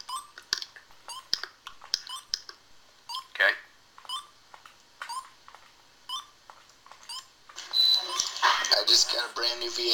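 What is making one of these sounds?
Short electronic beeps chirp from a video game.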